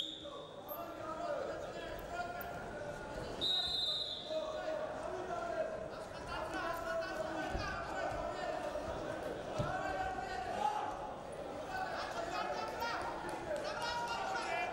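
Feet shuffle and thud on a wrestling mat.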